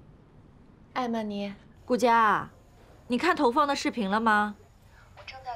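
A woman speaks through a phone in an online call.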